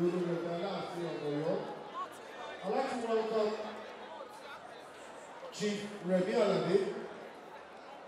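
An elderly woman speaks close by.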